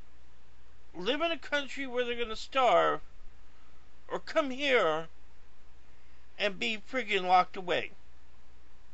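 A man speaks calmly and closely into a microphone, in short bursts.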